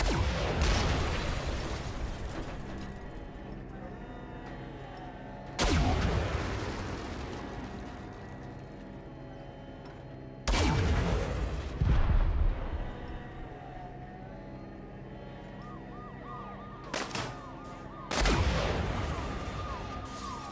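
Explosions roar and rumble.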